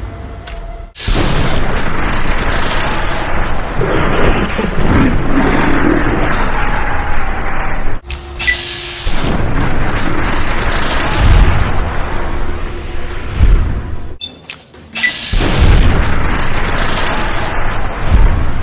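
An energy weapon fires with loud electric crackling.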